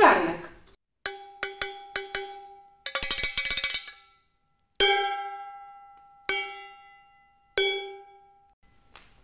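A wooden spoon strikes a metal pot, which rings.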